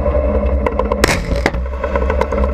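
A loud explosion booms nearby.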